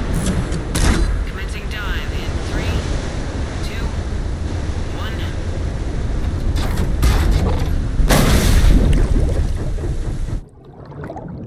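Stormy sea waves crash and roar in strong wind.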